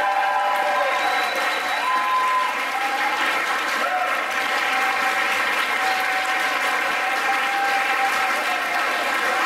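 A group of performers sings together loudly.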